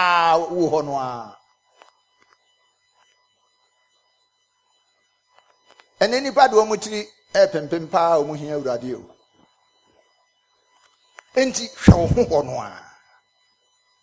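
A middle-aged man preaches with animation into a microphone, in bursts with long pauses.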